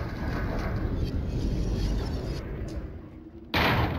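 A wooden door creaks as it swings slowly.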